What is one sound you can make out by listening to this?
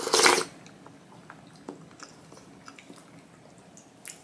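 Chopsticks and a spoon clink softly against a bowl.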